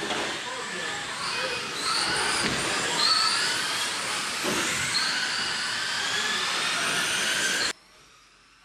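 Small electric motors of remote-control cars whine as the cars race around a track.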